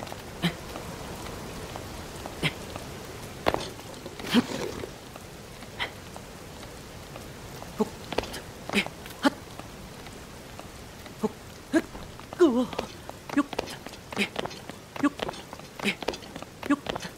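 Hands scrape and grip on stone in short bursts while climbing.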